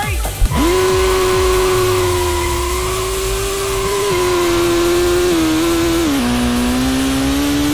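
A car engine roars at high revs, holding a steady pitch with small drops as gears shift.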